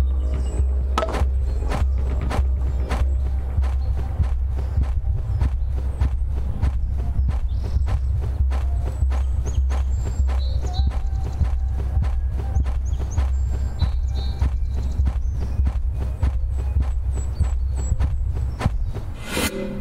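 Hands press rhythmically on a chest with quick, steady thumps.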